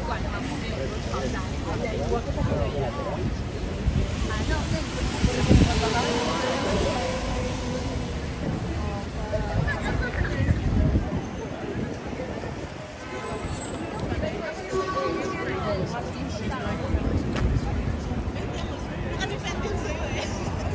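A crowd chatters nearby outdoors on a busy street.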